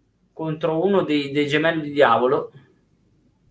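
A man speaks with animation over a headset microphone in an online call.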